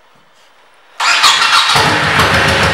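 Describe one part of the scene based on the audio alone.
A motorcycle engine cranks and starts.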